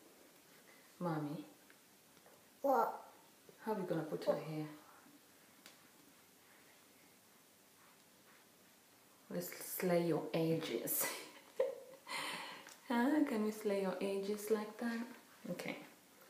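A young woman talks calmly and closely to the listener.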